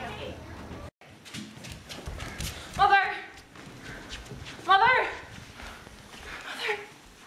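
Young women talk and exclaim excitedly nearby.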